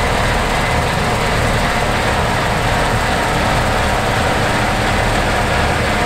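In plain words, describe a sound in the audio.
A combine harvester's engine roars steadily nearby.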